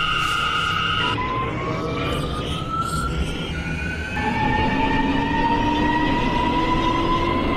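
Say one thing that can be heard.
A subway train's electric motors whine and rise steadily in pitch as the train speeds up.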